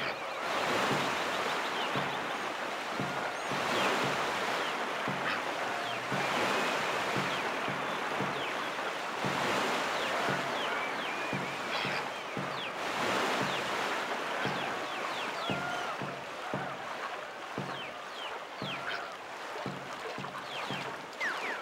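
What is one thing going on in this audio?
Water rushes and sprays steadily.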